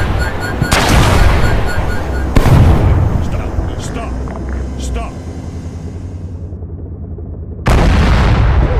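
Heavy explosions boom and roll away.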